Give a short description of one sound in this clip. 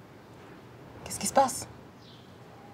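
A young girl speaks up nearby.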